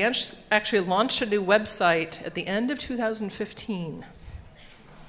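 An older woman speaks calmly through a microphone.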